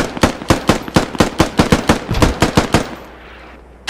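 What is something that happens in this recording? A rifle fires a rapid burst of shots that ring out outdoors.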